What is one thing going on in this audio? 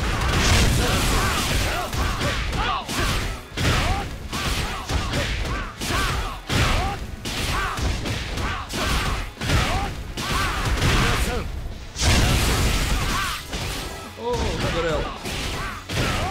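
Fighting sound effects crash and thud in rapid bursts.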